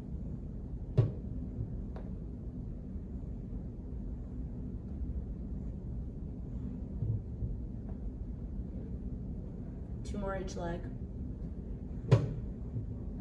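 Footsteps tap on a wooden step.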